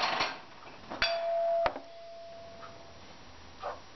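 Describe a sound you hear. A metal pan rings briefly after a knock.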